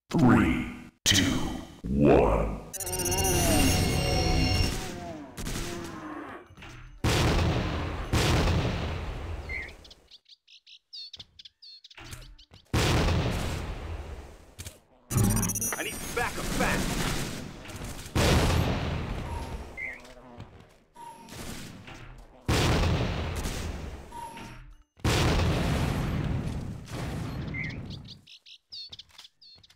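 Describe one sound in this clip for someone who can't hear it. A rifle fires rapid bursts, each followed by a booming echo.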